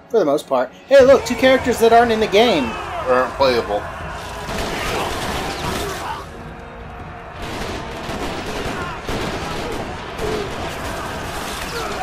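Soldiers shout in a noisy battle.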